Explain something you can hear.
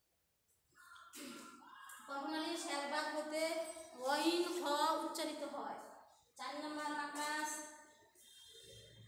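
A woman speaks loudly and clearly, close by.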